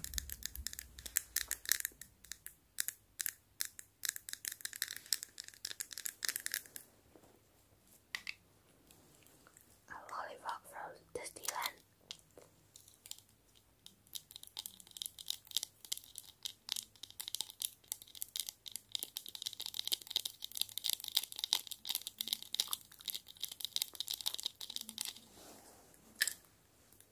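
Long fingernails tap and click on a hard plastic light-up toy.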